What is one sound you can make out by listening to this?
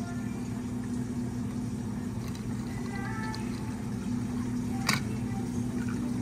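Coffee pours over ice in a glass.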